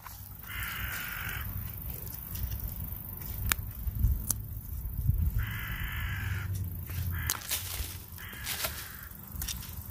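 Soil scrapes and crumbles under a hand hoe.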